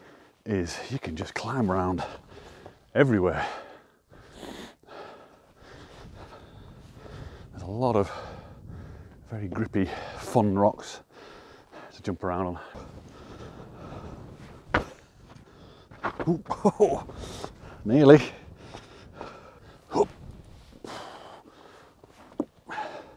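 An adult man talks up close outdoors, pausing between phrases.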